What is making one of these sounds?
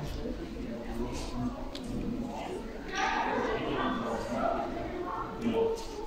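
Footsteps echo on a hard floor in a large echoing hall.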